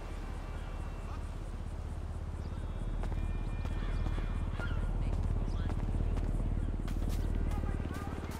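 Footsteps pad steadily on grass and pavement.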